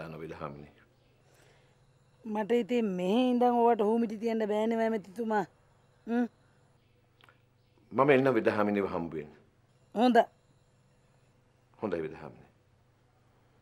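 A man speaks on a phone.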